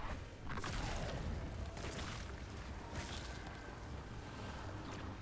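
A magical blast crackles and whooshes in bursts.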